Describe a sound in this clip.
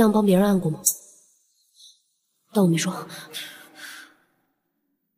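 A young man speaks softly and close by.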